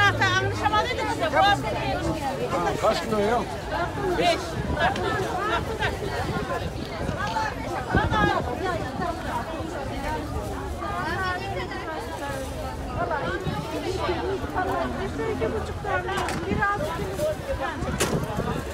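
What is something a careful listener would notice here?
Many men and women chatter all around in a busy outdoor crowd.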